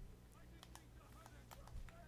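An electric bolt crackles and zaps.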